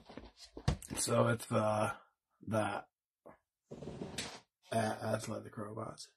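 A cardboard box bumps softly onto a table.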